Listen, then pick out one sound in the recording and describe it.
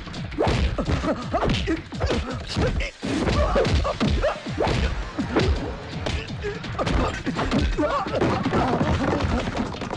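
A man shouts angrily and loudly.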